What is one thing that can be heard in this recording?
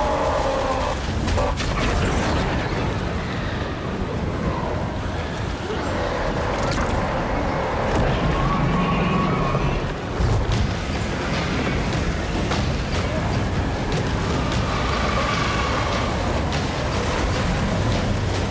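A large army clashes in battle with a loud, constant roar.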